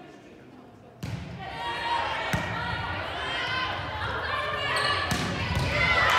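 A volleyball is struck with sharp smacks in an echoing gym.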